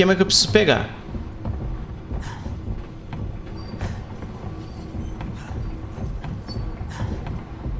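Footsteps walk slowly on a hard floor.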